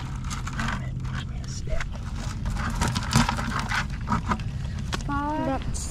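Crabs scrape and clatter inside a bucket.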